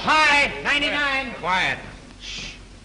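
A woman speaks with high, excited animation nearby.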